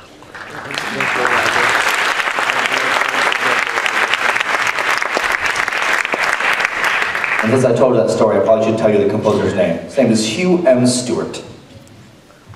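A large concert band plays loudly in a big echoing hall.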